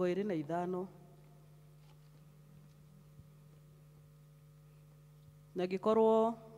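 A woman reads aloud through a microphone, pausing between phrases.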